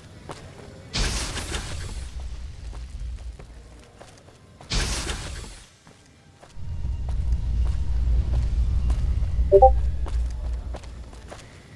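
A weapon fires explosive rounds that burst with loud, rumbling booms.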